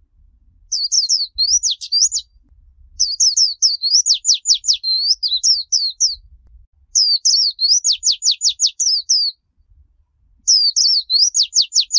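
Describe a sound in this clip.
A small bird chirps and trills in rapid, high bursts close by.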